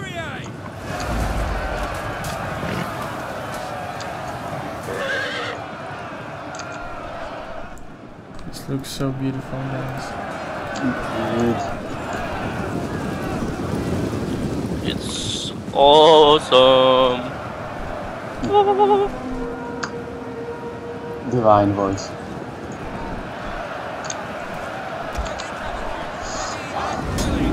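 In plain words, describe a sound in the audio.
A large army rumbles and clamours in battle.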